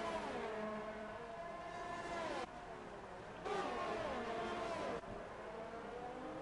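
Racing car engines whine at high revs and drop in pitch as the cars brake and pass by.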